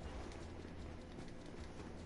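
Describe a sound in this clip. Footsteps thud along a metal floor.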